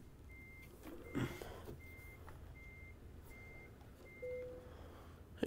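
A truck's reversing alarm beeps at an even pace.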